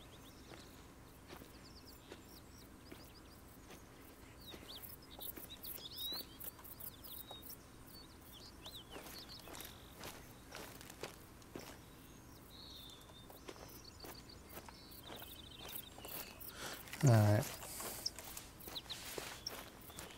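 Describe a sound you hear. Footsteps tread steadily over grass and forest floor.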